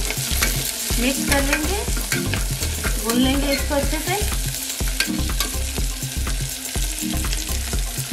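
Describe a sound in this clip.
A metal spoon scrapes and clinks against a metal pot.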